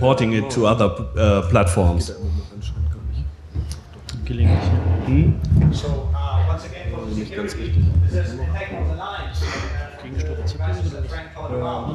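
A second man answers into a microphone, heard through loudspeakers.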